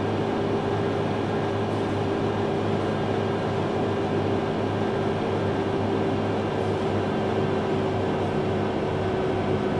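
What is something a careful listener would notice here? A truck engine hums steadily while driving along a road.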